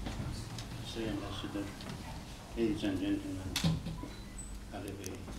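An elderly man speaks calmly to an audience.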